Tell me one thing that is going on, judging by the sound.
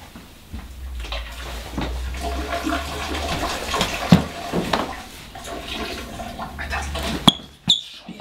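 Liquid splashes steadily into a toilet bowl.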